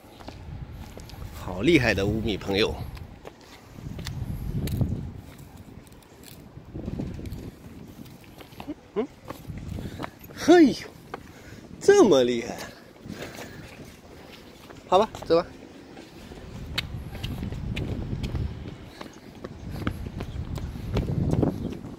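Small shoes patter on paving as a child runs.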